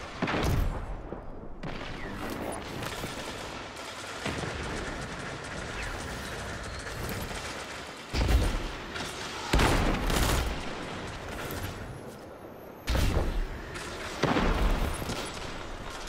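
Gunshots from a rifle ring out loudly, one at a time, with booming echoes.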